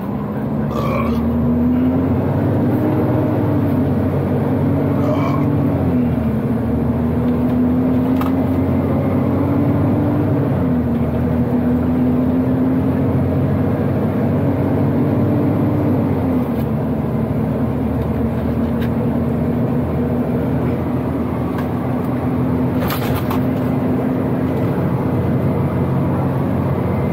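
A truck's diesel engine drones steadily, its pitch rising and falling as it shifts gears.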